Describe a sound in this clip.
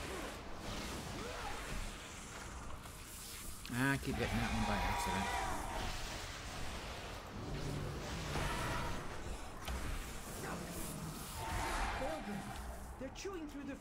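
An elderly man talks calmly into a microphone.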